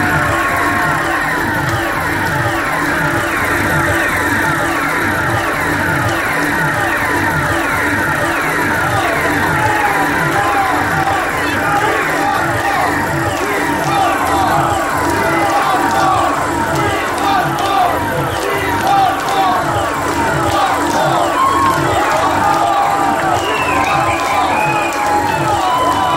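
Loud electronic music with a fast, pulsing beat and falling whistling tones plays through speakers in a large hall.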